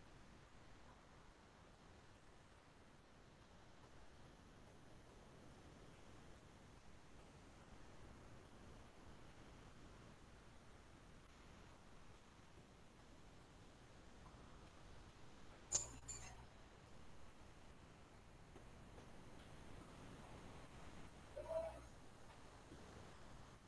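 A girl speaks faintly through an online call microphone.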